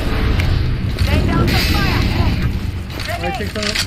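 A smoke grenade hisses loudly.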